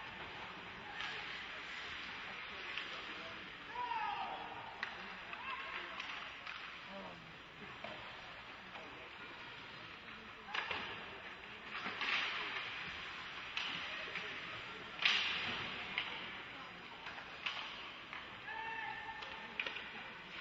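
Hockey sticks clack sharply against the puck.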